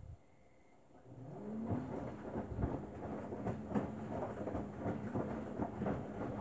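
A front-loading washing machine's drum motor whirs up and turns.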